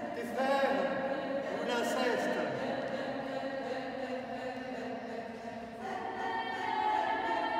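A mixed choir of men and women sings together in a large echoing stone hall.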